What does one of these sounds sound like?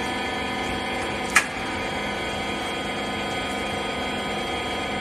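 A machine hums steadily with a loud droning whine.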